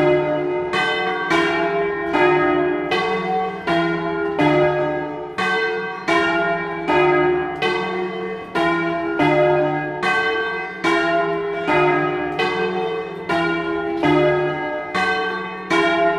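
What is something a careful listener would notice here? Large church bells ring loudly in a rapid, overlapping peal, each stroke ringing on.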